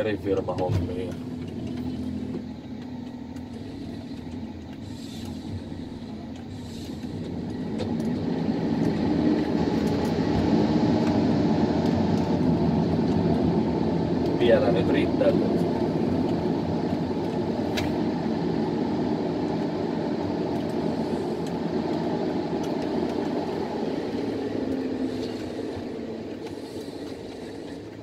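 A forestry machine's diesel engine works under load, heard from inside the cab.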